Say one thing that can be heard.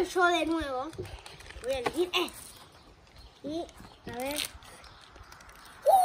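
Plastic packaging crinkles as a boy tears open a toy pack.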